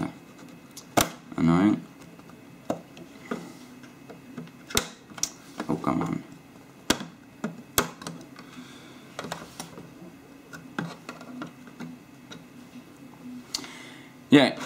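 Plastic parts click and tap as a tool pries at a device casing.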